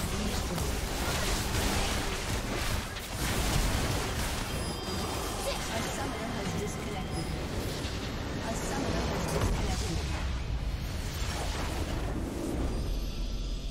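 Video game spell effects and weapon hits clash in a loud, busy battle.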